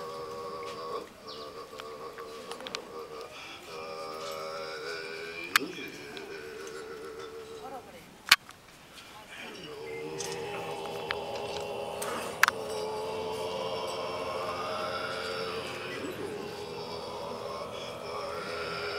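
Several men chant together in low, steady voices.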